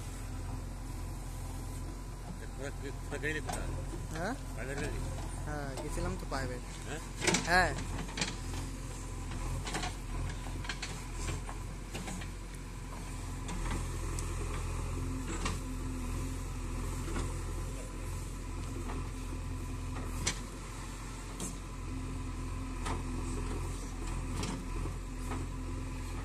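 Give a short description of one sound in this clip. A backhoe bucket scrapes and digs into soil.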